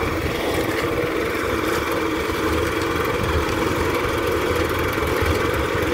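A cement mixer rumbles and churns steadily close by.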